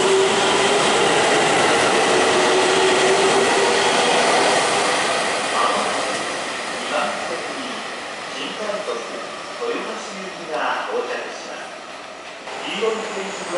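A train rumbles past loudly, then the noise slowly fades.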